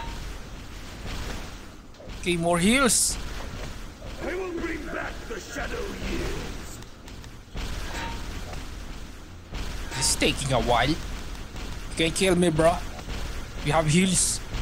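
Magic spells whoosh and crackle in short bursts.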